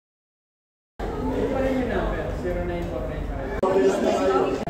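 A middle-aged woman speaks close by.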